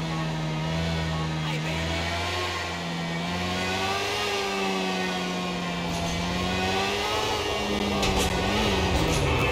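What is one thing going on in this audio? A motorcycle engine hums steadily and its pitch rises and falls as it rides.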